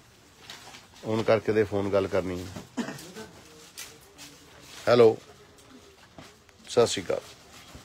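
Cloth rustles as it is unfolded and handled.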